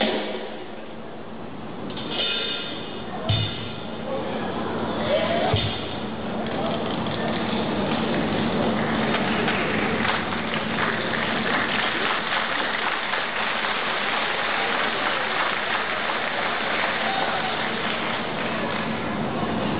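Juggling clubs smack into performers' hands in a large echoing hall.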